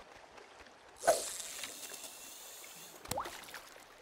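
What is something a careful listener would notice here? A fishing line whizzes out as a rod is cast.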